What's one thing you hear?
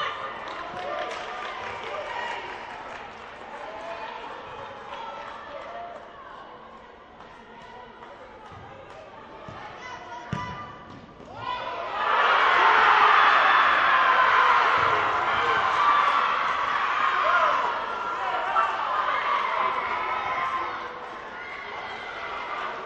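A ball thumps off a player's foot.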